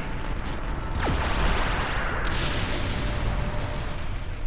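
Rumbling explosions crash and crackle.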